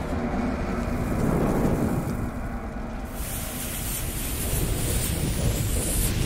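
A lit fuse fizzes and crackles.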